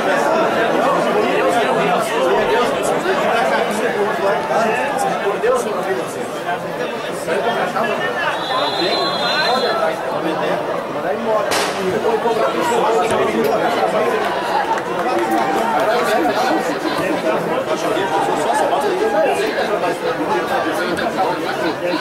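A large crowd cheers and chants steadily outdoors.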